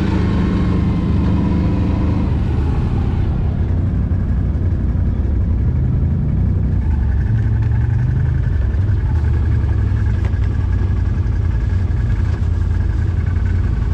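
Another off-road vehicle's engine idles nearby.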